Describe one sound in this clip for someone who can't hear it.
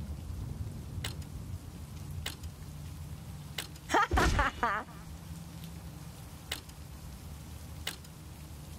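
A game menu ticks with short clicks as the selection moves from item to item.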